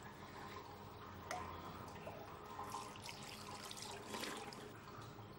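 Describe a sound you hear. Water splashes in a basin.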